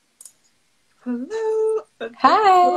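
A young woman talks brightly and with animation over an online call.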